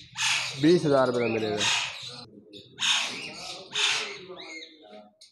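A parrot screeches harshly, again and again.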